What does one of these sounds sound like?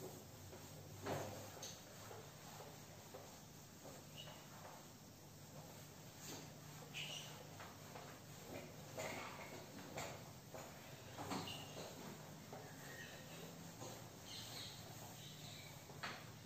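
A cloth duster rubs and squeaks across a whiteboard.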